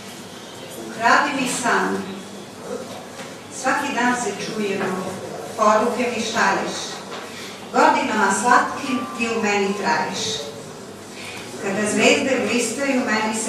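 A middle-aged woman speaks calmly into a microphone, heard through a loudspeaker in a room.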